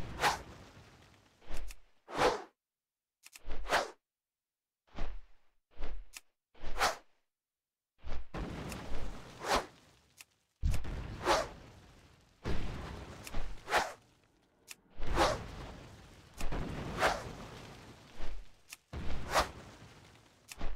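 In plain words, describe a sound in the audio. Large wings beat with heavy whooshing flaps, over and over.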